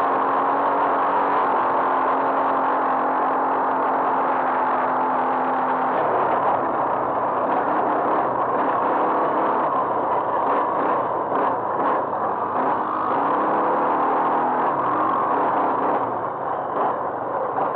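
A quad bike engine roars loudly close by.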